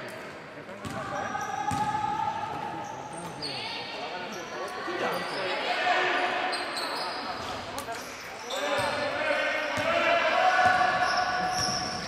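Young women players call out to each other from across the hall.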